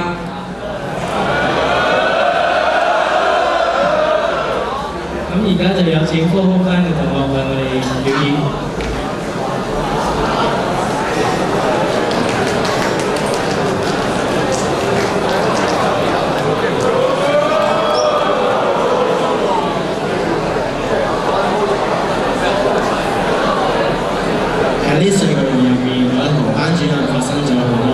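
A crowd of young people cheers and shrieks loudly in a large hall.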